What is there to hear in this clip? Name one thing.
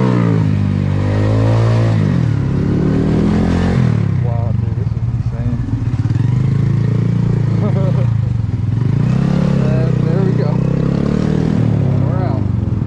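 A motorcycle engine revs up and down close by.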